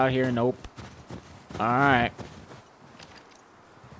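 Boots crunch on snow.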